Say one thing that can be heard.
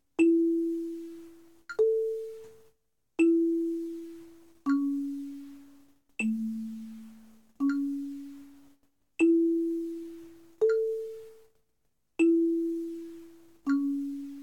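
Low wooden marimba notes ring out one at a time at a slow, even pace, each fading away before the next.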